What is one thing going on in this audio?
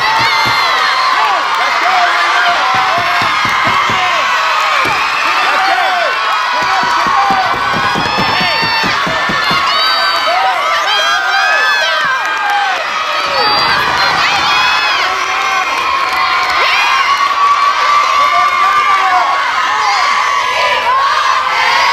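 A crowd of young women shout and cheer in a large echoing hall.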